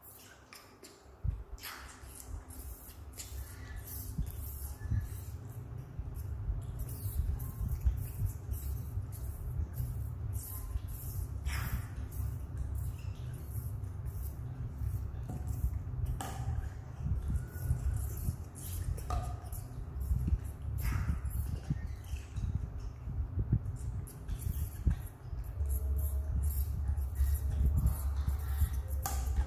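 Young monkeys suck and slurp milk from bottles.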